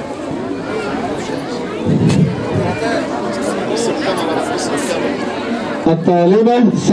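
A crowd chatters in a noisy open space.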